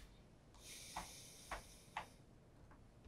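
A fingertip taps on a metal tin lid a few times.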